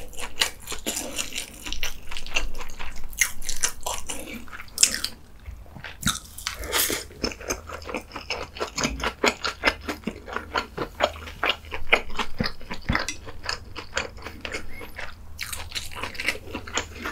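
Chopsticks clink against a dish.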